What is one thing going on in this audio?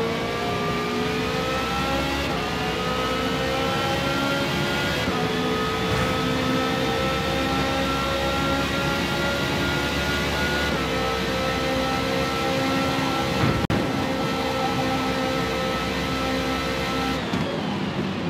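A racing car engine screams at high revs, climbing and dropping in pitch with each gear change.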